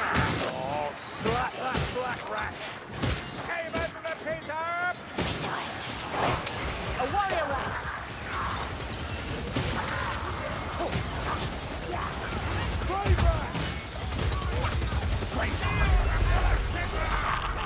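Creatures screech and snarl as they are hit.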